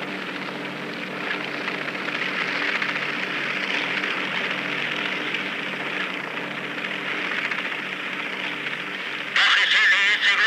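A helicopter's engine and rotor drone steadily overhead.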